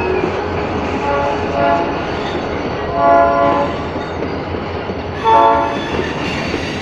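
A train horn sounds in short blasts.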